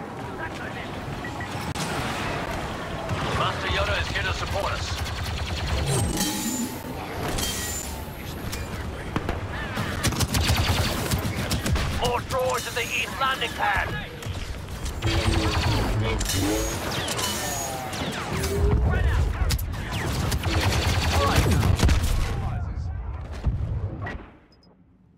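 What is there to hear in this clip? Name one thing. Blaster guns fire in rapid bursts.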